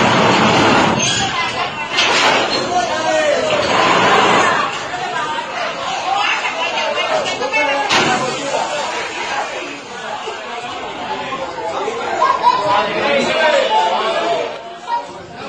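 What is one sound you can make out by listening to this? A crowd of people talk and chatter throughout.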